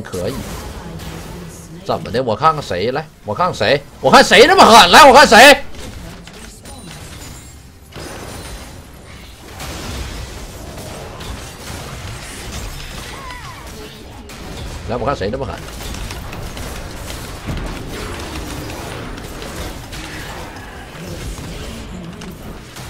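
Game spell effects crackle and boom.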